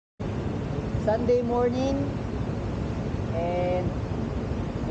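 A young man speaks briefly nearby, muffled.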